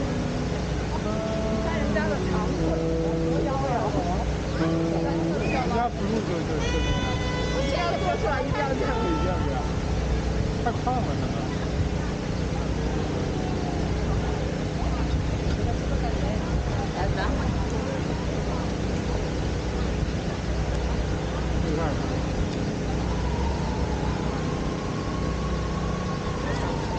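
A crowd of people chatters outdoors in the open.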